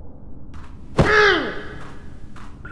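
A creature lets out a loud, sudden shriek that drops in pitch.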